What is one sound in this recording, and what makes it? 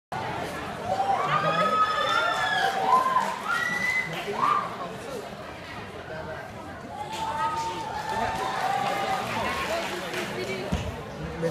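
A young man sings through a microphone and loudspeakers in a large hall.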